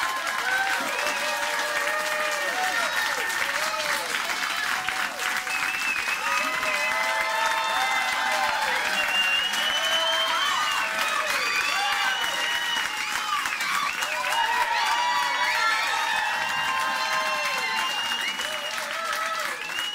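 People in a crowd whistle.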